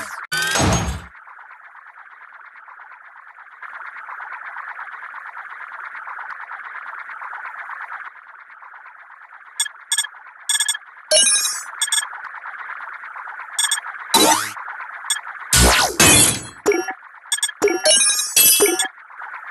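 A spinning top whirs steadily in a game.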